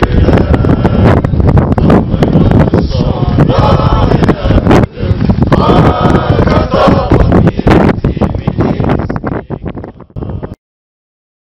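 Strong wind roars across the microphone outdoors.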